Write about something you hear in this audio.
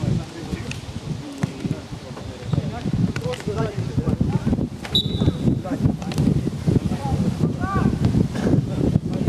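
Men shout and call to each other across an open outdoor field.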